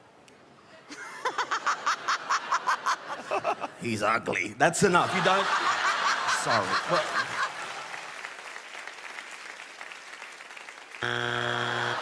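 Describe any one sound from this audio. An audience claps and cheers in a large hall.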